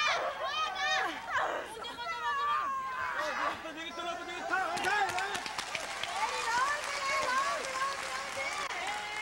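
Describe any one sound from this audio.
An arena crowd cheers and shouts with high-pitched voices.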